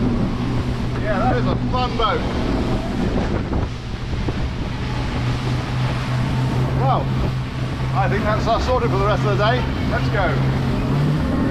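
A middle-aged man talks and laughs cheerfully close by.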